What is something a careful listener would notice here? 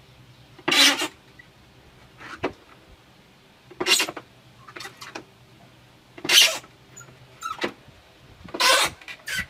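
A hollow plastic dome rustles and creaks as hands turn it.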